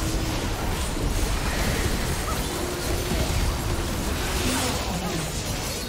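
Video game spells and blows clash in a busy battle.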